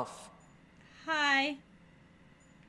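Another woman answers briefly and calmly.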